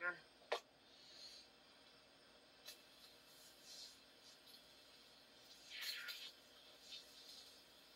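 An aerosol can sprays in short hissing bursts.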